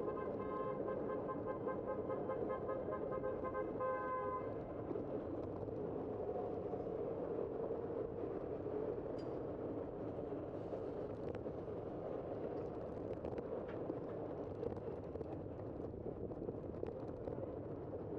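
A bicycle rolls along a city street.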